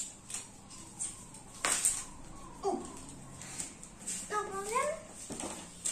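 Flip-flops slap on a tiled floor as a person walks.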